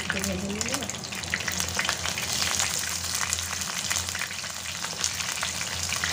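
Fish lands in the pan with a soft splash of sizzling oil.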